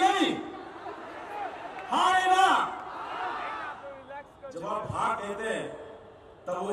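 A man speaks forcefully into a microphone over loudspeakers, echoing outdoors.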